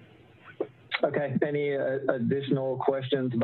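A second man speaks calmly over an online call.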